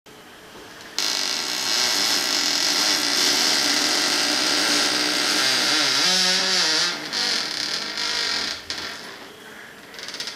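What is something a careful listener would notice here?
Bees buzz loudly in a dense swarm.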